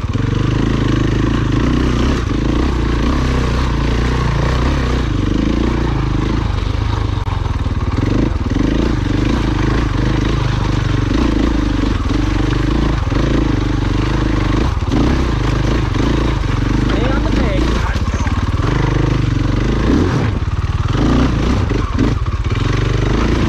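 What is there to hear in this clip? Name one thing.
A dirt bike engine revs and sputters up close.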